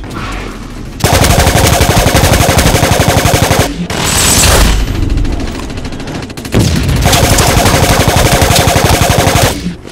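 A rapid-fire gun shoots in long bursts.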